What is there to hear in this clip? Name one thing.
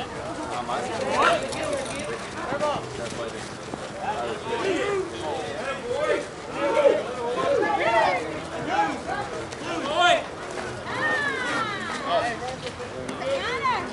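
Men and women shout and call out across an open field outdoors.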